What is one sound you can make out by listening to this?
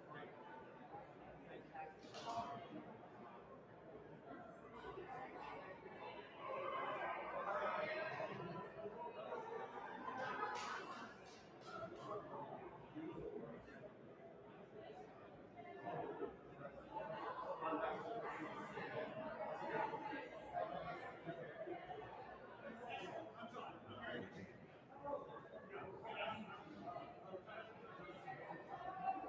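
A crowd of people murmurs and chats in a large echoing hall.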